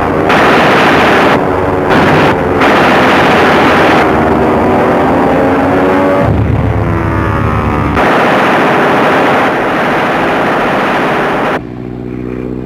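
Propeller plane engines drone and roar overhead.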